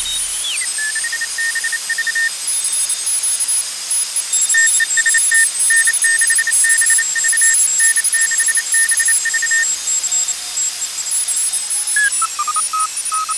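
A radio receiver's tone slides in pitch as it is tuned.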